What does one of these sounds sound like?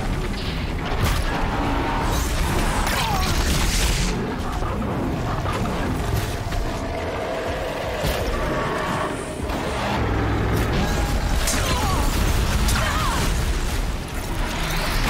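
Heavy impacts and explosions crash and rumble.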